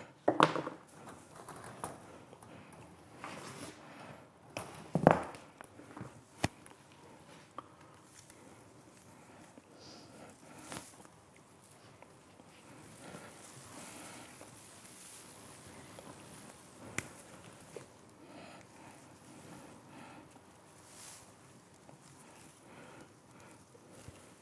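Pine needles rustle softly as hands work through a branch.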